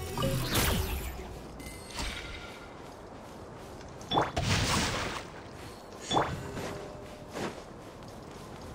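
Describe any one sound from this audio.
Game sound effects of sword slashes and magic bursts crackle in short, loud bursts.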